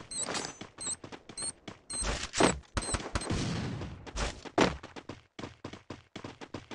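Footsteps thud on a wooden floor and stairs.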